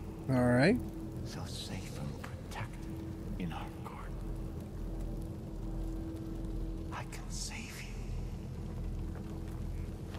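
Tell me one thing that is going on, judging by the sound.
A man speaks slowly in a low, menacing voice.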